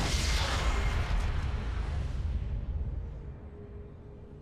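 Magic spells blast and whoosh in a loud game battle, then fade.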